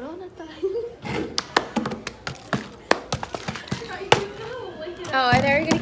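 A plastic bottle crinkles and crackles in someone's hands.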